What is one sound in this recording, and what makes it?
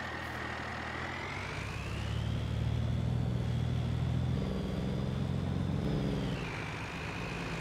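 A pickup truck engine revs up and drives off, then slows down.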